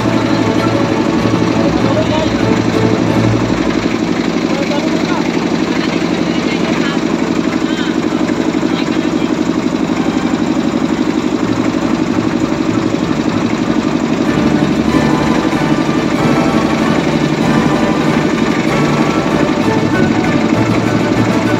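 A boat motor drones steadily close by.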